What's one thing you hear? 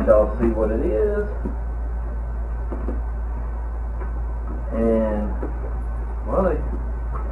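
Cardboard boxes rustle and scrape in hands.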